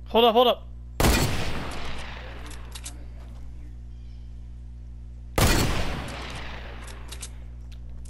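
A rifle fires single loud shots that echo away.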